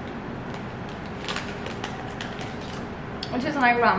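A snack wrapper crinkles.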